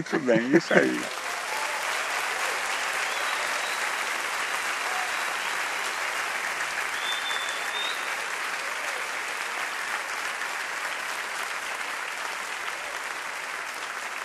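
An audience murmurs in a large hall.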